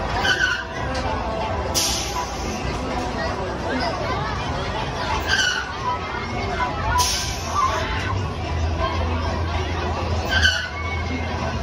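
Riders scream at the top of each swing.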